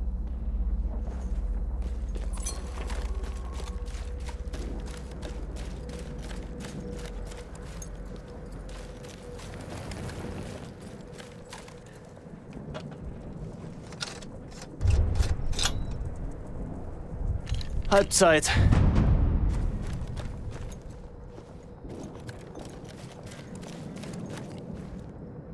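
Footsteps crunch steadily over gravel and dirt.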